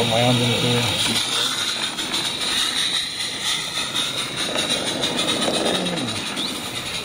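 A small model train rumbles and clicks steadily along its rails close by.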